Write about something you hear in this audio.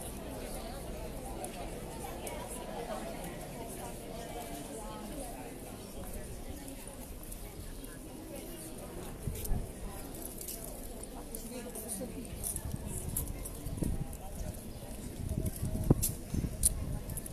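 A crowd of people murmurs and chatters nearby outdoors.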